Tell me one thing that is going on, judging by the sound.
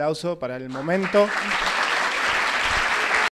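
A man and a woman clap their hands.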